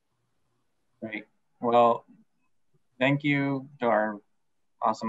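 A young man speaks quietly over an online call.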